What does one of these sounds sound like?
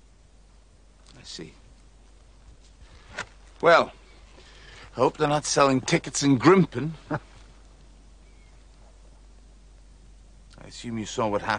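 A younger man speaks in a light, conversational tone close by.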